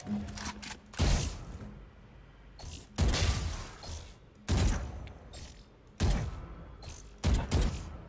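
Single gunshots ring out at a steady pace, each with a short echo.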